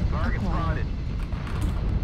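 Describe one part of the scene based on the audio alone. Laser weapons fire in short bursts.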